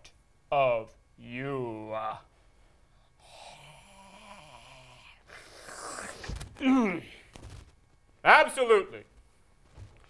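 A young man speaks with animation, making playful vocal sounds.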